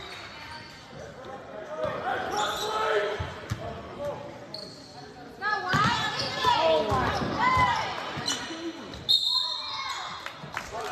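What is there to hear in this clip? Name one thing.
Young men shout and call out in an echoing gym.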